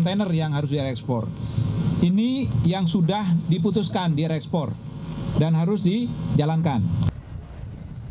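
A man speaks firmly into a microphone.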